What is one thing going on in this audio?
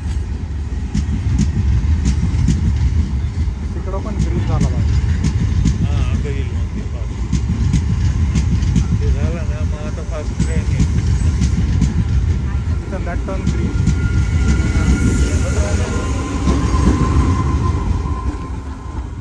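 A passenger train rushes past close by with a loud, heavy rumble.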